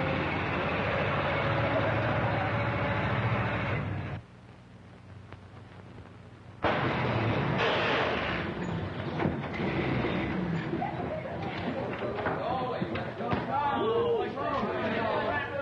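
An old truck engine runs as the truck drives along a lane.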